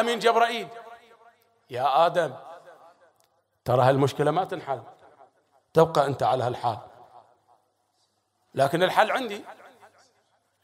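A man speaks with animation into a microphone, in short phrases with pauses, in an echoing room.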